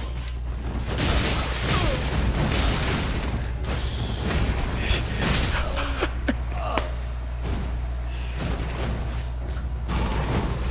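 Swords clash and strike repeatedly in a fight.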